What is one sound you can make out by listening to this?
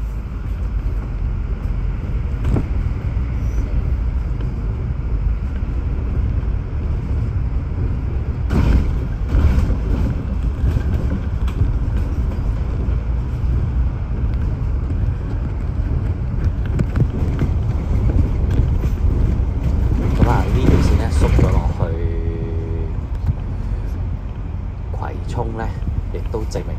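A bus engine hums and rumbles as it drives along.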